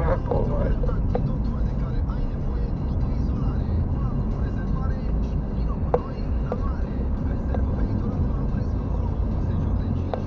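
A car engine hums steadily from inside the car as it drives along a road.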